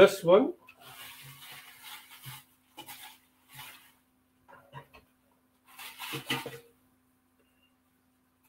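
Metal and glass clink and rattle as a tin is handled.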